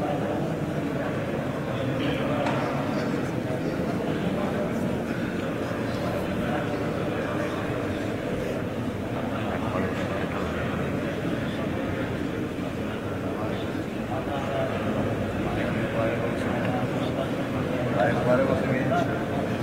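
A crowd of men murmurs and chats in a large echoing hall.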